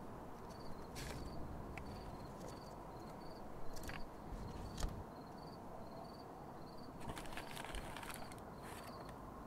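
A paper envelope rustles and crinkles in someone's hands.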